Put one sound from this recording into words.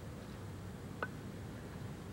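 A cue tip strikes a billiard ball with a sharp click.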